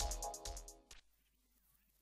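Computer keys click under typing fingers.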